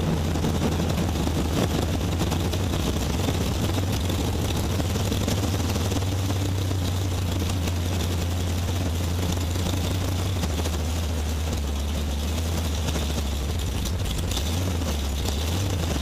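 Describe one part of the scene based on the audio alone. A car engine roars loudly and steadily close by.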